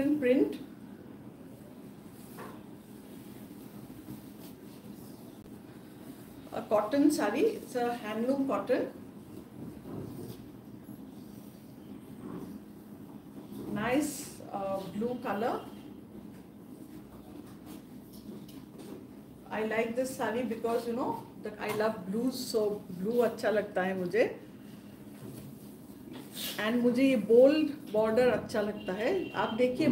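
Fabric rustles as it is unfolded and draped.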